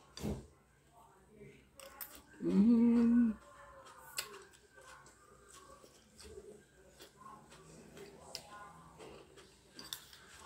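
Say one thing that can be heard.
A fork clinks against a dish.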